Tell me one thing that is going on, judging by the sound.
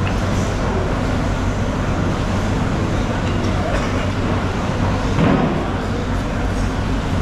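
Noisy, echoing hubbub fills a large hall.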